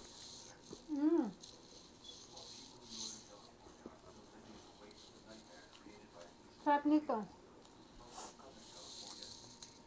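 A woman chews food noisily.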